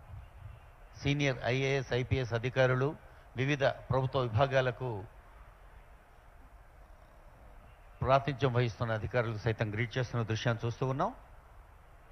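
A man speaks in short bursts through a microphone.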